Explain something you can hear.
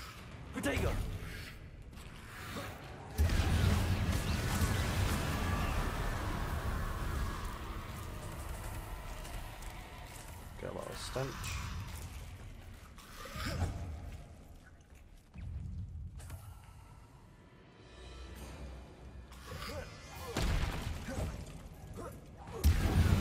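Magic spells crackle and boom in a fight.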